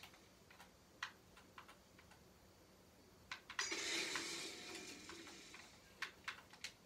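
Gunshots from a video game crack out of a television speaker.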